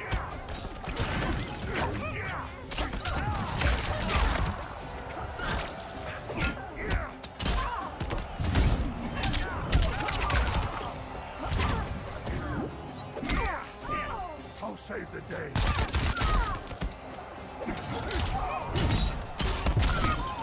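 Blades slash and clang.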